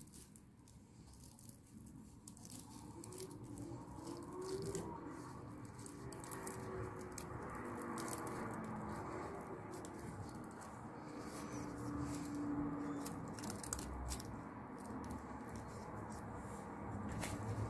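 Plastic gloves rustle and crinkle as hands work.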